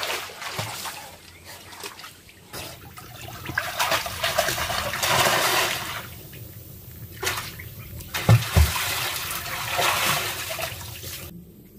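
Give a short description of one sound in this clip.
Water splashes as a person swims.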